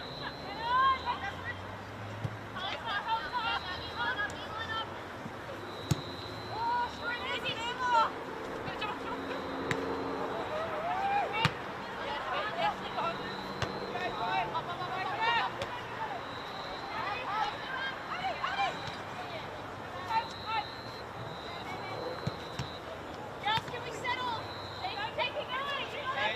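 Women players shout to each other across an open field at a distance.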